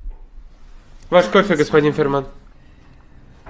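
A young woman speaks up clearly, close by.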